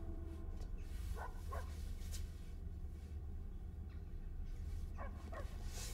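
A young woman gasps and breathes nervously nearby.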